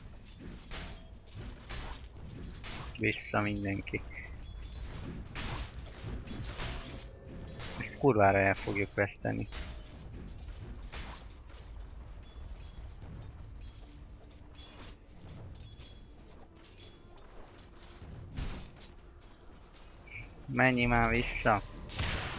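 Weapons clash and spells burst in a fast fight.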